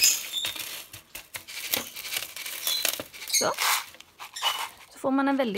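Small seeds rattle and scatter as a hand sweeps them across a plastic surface.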